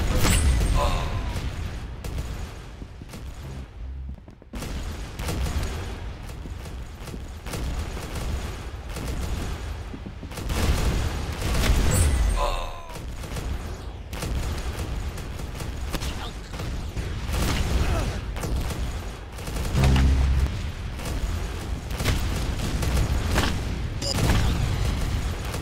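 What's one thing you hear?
A shotgun fires in loud, booming blasts.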